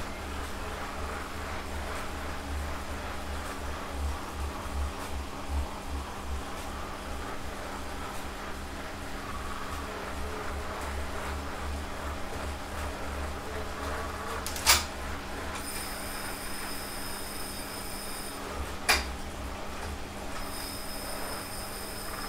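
A stationary bike trainer hums and whirs as a man pedals.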